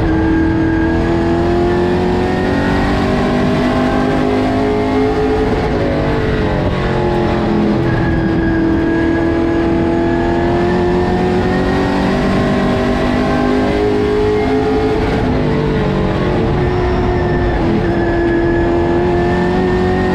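A race car engine roars loudly from inside the cockpit, its pitch rising and falling with the throttle.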